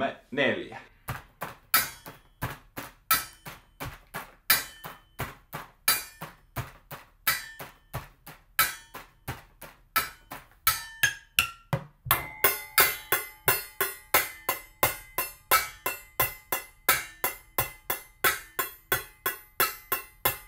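Sticks drum rapidly on metal pots and lids in a steady rhythm.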